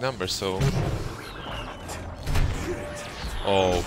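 Laser blasters fire in quick bursts.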